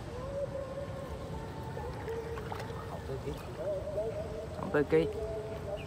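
A fish flaps and splashes in water.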